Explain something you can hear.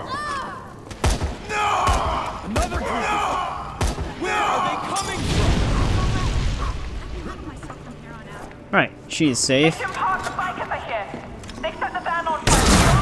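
Gunshots fire in short sharp bursts.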